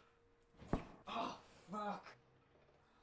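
A young man groans loudly nearby.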